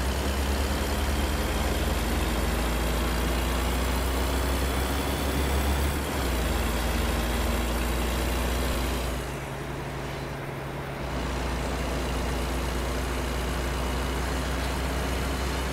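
A truck engine drones steadily, dipping briefly before picking up again.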